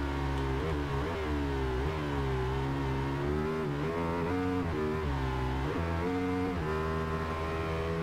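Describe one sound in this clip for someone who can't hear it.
A motorcycle engine roars loudly, its pitch rising and dropping as it shifts gears.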